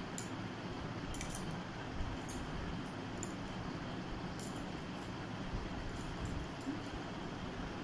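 Cloth rustles softly under a woman's hands.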